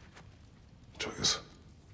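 A deep-voiced man answers calmly.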